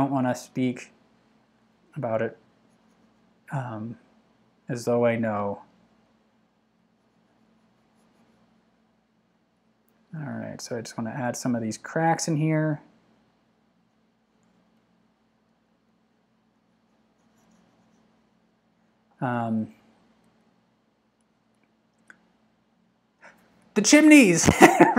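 A man speaks calmly and close, in short phrases with pauses.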